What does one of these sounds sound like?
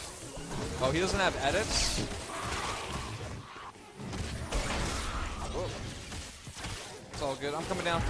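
Game weapons fire and blast repeatedly.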